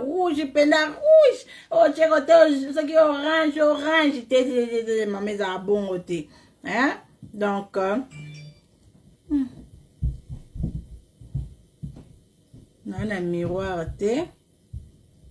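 A woman sings close by.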